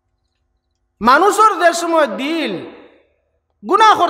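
A man preaches forcefully into a microphone in a sung, chanting tone.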